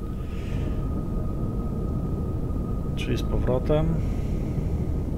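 A propeller plane's engine drones steadily.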